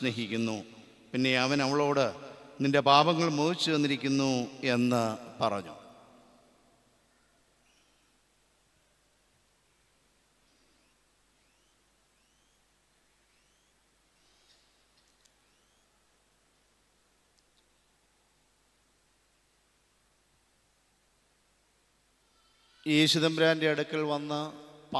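A middle-aged man speaks with animation through a microphone in a reverberant hall.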